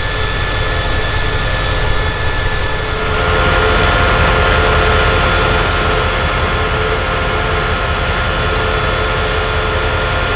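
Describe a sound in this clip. A diesel locomotive engine rumbles and hums steadily close by.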